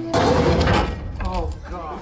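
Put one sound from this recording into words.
A heavy metal body lands with a loud thud.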